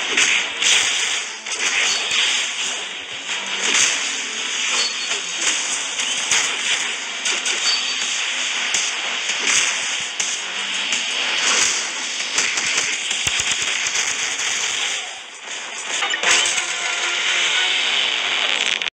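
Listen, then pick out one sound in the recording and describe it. Game attack blasts and impacts crackle and thump rapidly.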